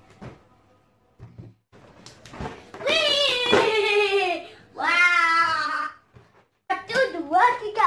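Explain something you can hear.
Balloons thump softly as they are hit and bounced.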